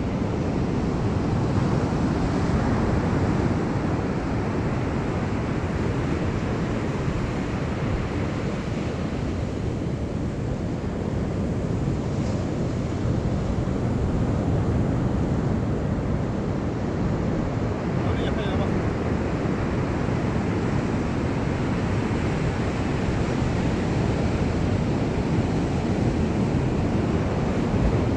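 Waves break on a beach nearby.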